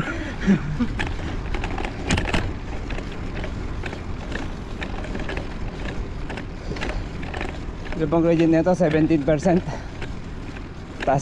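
A motorcycle engine hums.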